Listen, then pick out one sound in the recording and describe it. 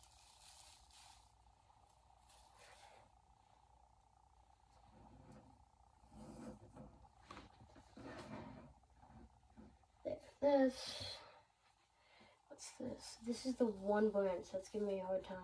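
Plastic tree branches rustle as they are handled.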